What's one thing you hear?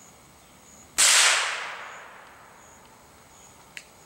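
A gunshot cracks outdoors and echoes away.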